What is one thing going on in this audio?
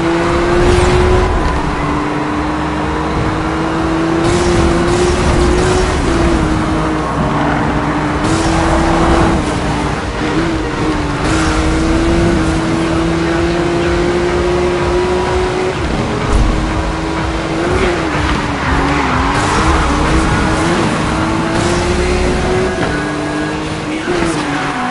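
A sports car engine roars at high revs, rising and falling in pitch as the car speeds along.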